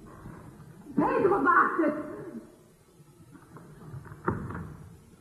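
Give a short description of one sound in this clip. A woman speaks with emotion, her voice trembling.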